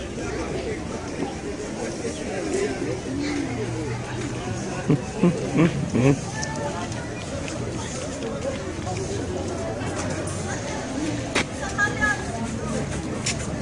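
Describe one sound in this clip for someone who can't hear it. A pig roots and scrapes among loose stones.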